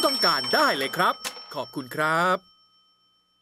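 A man speaks with animation through a small loudspeaker.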